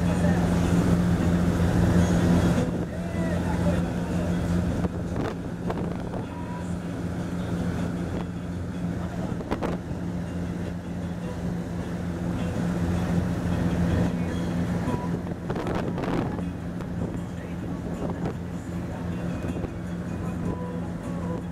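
Wind blusters against the microphone.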